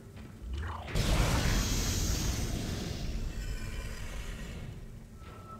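A heavy metal door rumbles and hisses open.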